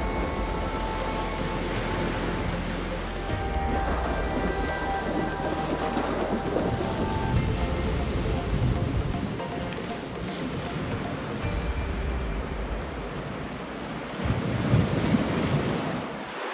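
Waves wash gently onto a pebble shore.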